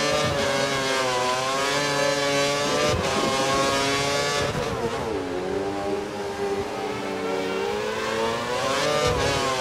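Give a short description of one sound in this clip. A Formula One V8 engine screams at high revs, drops through downshifts and revs up again.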